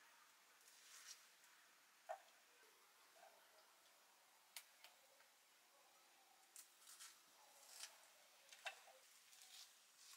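A blade slices through chillies with small crisp clicks.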